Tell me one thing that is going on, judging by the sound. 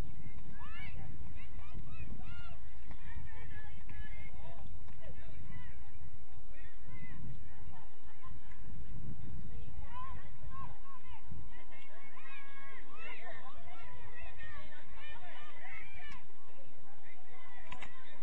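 Young players shout far off across an open field.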